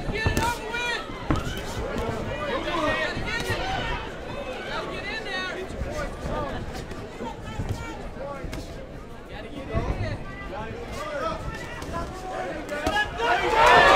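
A crowd of spectators shouts and cheers in a large room.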